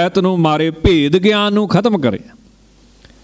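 A man sings or chants through a microphone in a strong, drawn-out voice.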